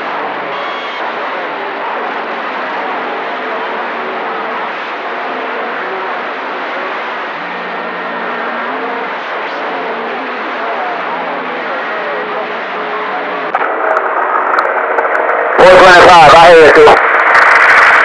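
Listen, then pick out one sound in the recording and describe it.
A radio receiver plays a crackly, band-limited broadcast through its loudspeaker.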